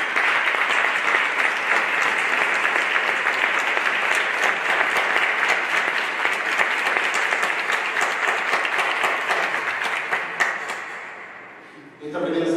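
A crowd applauds loudly in a large echoing hall.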